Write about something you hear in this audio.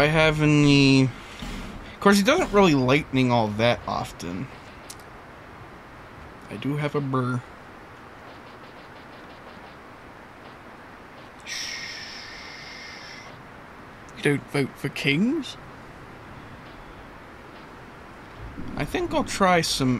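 A second man talks casually over a microphone.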